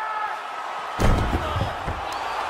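A body slams onto a mat with a heavy thud.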